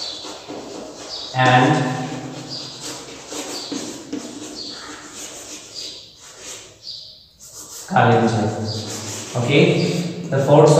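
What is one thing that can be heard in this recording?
A man speaks steadily, like a teacher explaining, close by.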